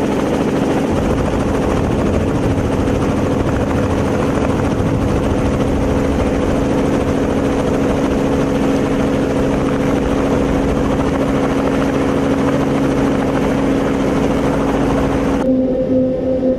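Heavy farm machinery engines rumble and drone steadily outdoors.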